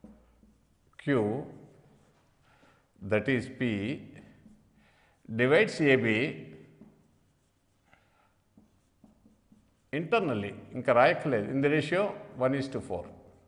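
An elderly man speaks slowly and clearly, close to a microphone.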